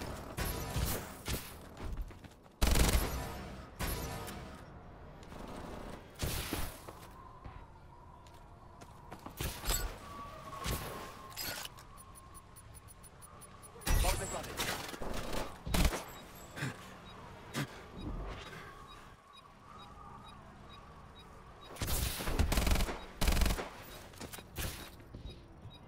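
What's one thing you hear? Gunfire bursts sharply in loud volleys.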